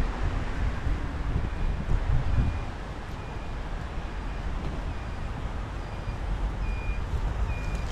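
Traffic hums softly in the distance.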